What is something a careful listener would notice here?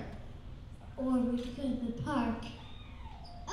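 Another young girl answers into a microphone, heard through loudspeakers.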